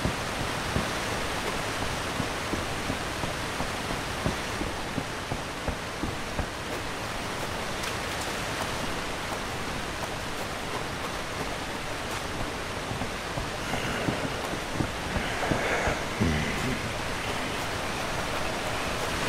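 Water laps and flows nearby.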